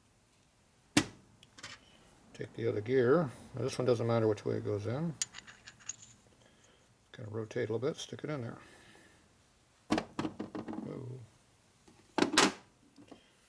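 Small metal parts click sharply as they are handled.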